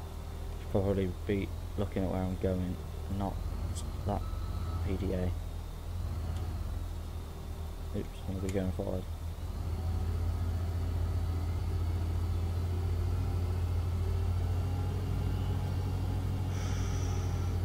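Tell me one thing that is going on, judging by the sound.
A loader's diesel engine rumbles steadily.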